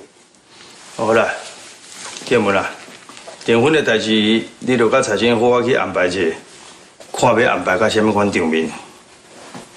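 An older man speaks calmly and firmly, close by.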